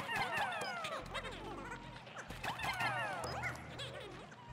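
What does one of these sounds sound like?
Small creatures chirp in quick, high, falling squeaks.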